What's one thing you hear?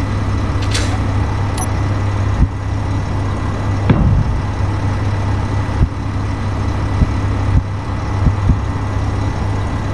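A low engine hum drones steadily.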